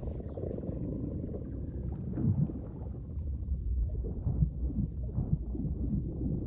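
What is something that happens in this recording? Deep, muffled water rumbles steadily underwater.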